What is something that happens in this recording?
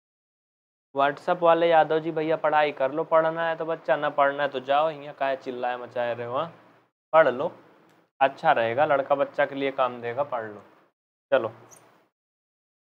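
A young man speaks with animation into a nearby microphone.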